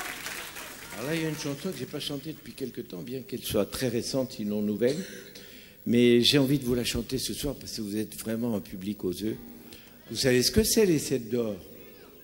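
A man speaks through a microphone in a large hall.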